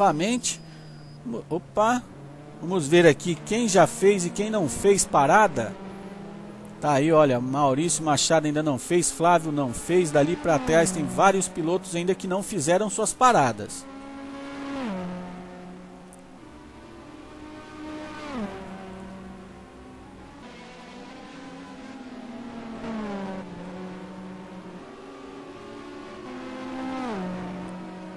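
A race car engine revs high and drops in pitch as it shifts gears.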